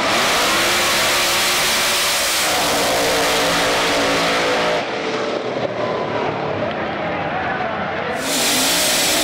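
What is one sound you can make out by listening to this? Race car engines roar loudly as drag cars launch and speed away.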